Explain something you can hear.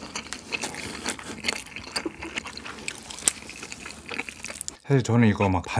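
Soft clicks and smacks of food being stirred and eaten are heard close up.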